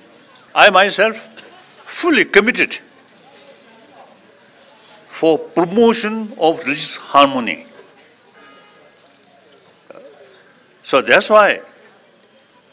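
An elderly man speaks calmly into a microphone, in short bursts with pauses.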